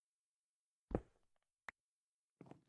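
A block breaks with a short crunch.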